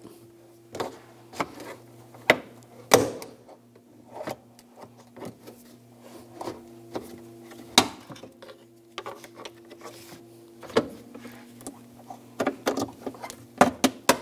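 Plastic clips snap loose with sharp clicks.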